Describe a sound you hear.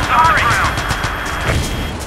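Military jeeps drive past with engines rumbling.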